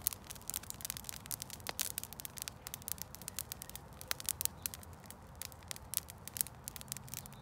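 Dry grass crackles and pops as it burns.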